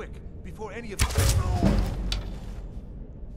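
An arrow flies and strikes with a sharp thud.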